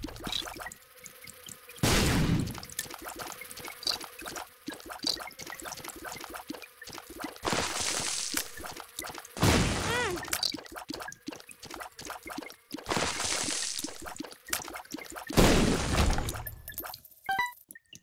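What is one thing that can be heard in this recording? Rapid shots pop and splat again and again in a game.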